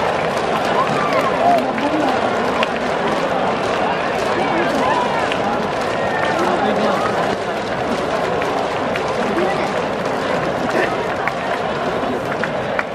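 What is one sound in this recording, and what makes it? A crowd of spectators cheers and chatters loudly in an open stadium.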